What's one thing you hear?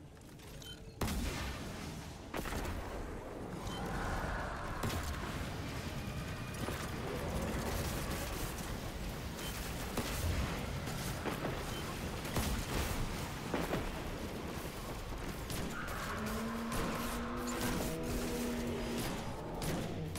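Gunshots and explosions boom repeatedly.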